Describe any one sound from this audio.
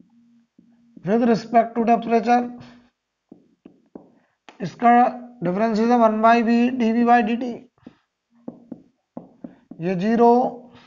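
A man speaks calmly, as if lecturing.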